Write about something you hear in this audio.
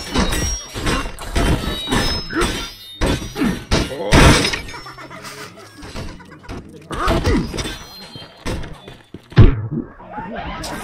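Heavy weapon blows thud and smack against a body again and again.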